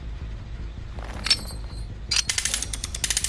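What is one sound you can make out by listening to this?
A metal trap clanks and rattles as it is set.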